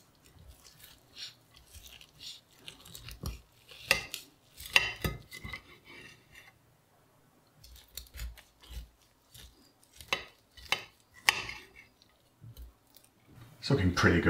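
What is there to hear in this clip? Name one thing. A knife slices through cooked meat with soft scraping sounds.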